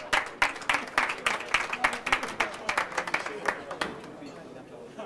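An audience claps in rhythm.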